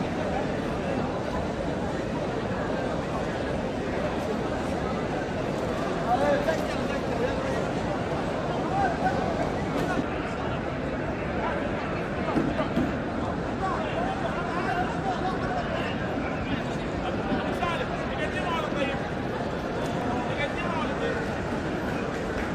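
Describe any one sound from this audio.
Men and women call out and pray aloud among the crowd.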